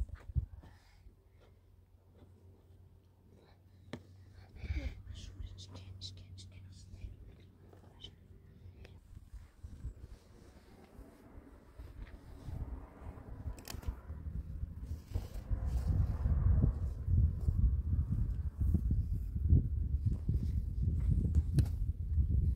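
A cord rustles and rubs against tent canvas.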